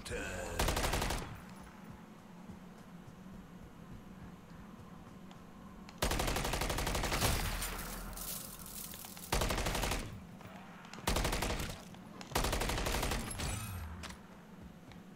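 Gunfire bursts loudly in rapid shots.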